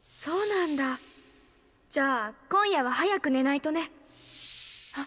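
A boy speaks calmly and cheerfully.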